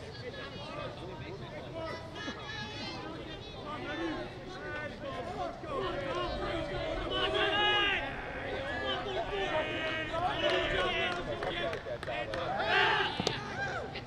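Young men shout and cheer from a distance outdoors.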